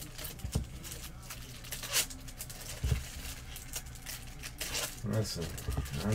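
Foil card packs crinkle as they are torn open.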